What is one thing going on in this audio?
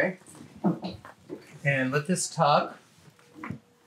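A young woman talks nearby.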